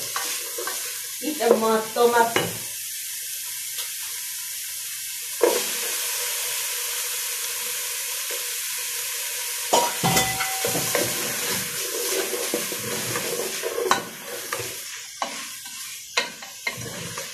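Food sizzles steadily in a hot pot.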